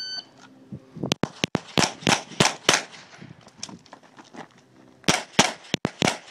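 Pistol shots fire in rapid bursts outdoors.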